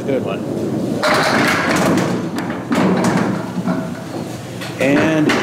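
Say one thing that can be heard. Bowling pins crash and clatter as they are knocked over.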